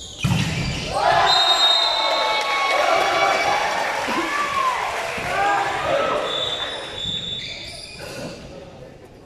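A crowd of young women cheers and shouts in a large echoing hall.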